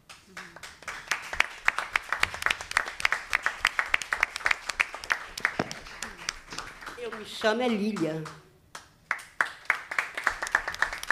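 A crowd claps and cheers in a room.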